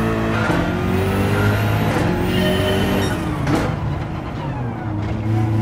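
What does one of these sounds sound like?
A racing car engine roars loudly, climbing in pitch and dropping back with each gear change.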